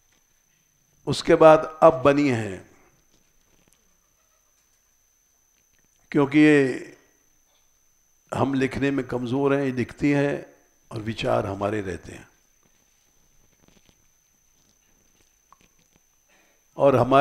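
An elderly man speaks calmly into a close microphone, in short phrases with pauses.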